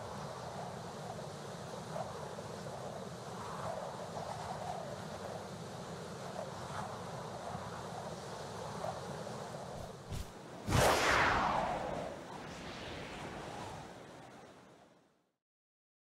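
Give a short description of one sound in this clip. Wind rushes steadily.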